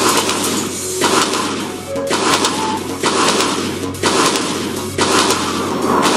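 Cartoon explosions pop and boom in quick bursts.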